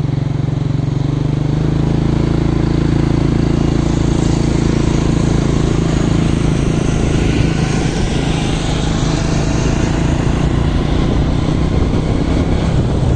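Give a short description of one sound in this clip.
Wind rushes past, loud and buffeting.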